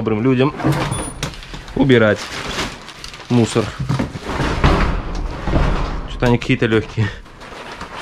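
Cloth and objects rustle as hands rummage through them.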